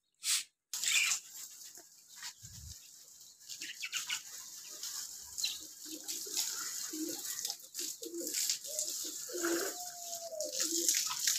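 Water sprays from a hose onto leaves.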